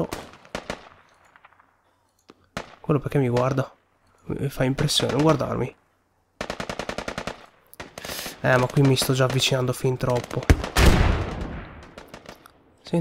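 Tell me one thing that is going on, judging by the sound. Rifle shots crack loudly and echo outdoors.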